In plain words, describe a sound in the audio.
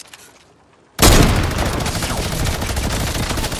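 A pickaxe strikes wood repeatedly in a video game.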